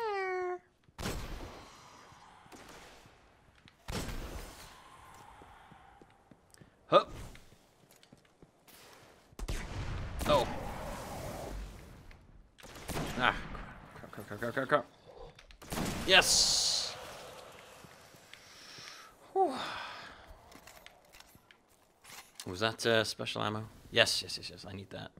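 Gunshots fire in sharp bursts with echoing booms.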